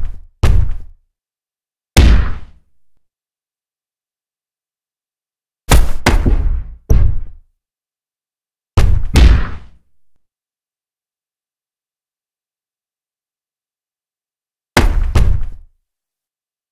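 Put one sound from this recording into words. Punches land with heavy, booming thuds.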